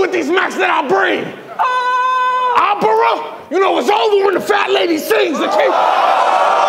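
A young man raps forcefully and loudly into a microphone.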